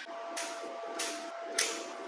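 An arc welder crackles and sizzles.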